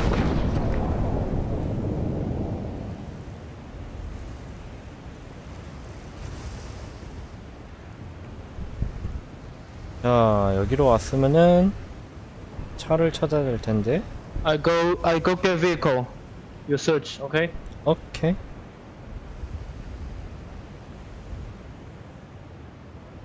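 Wind rushes loudly and then quiets to a steady soft roar.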